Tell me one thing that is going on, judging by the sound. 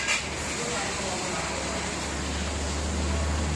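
A machine's motor hums steadily.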